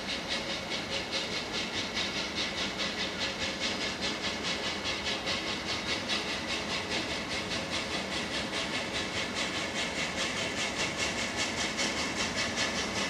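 A steam locomotive chuffs rapidly and rhythmically as it approaches.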